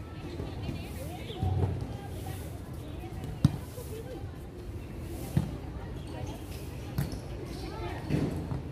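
Women players call out to each other on an outdoor court.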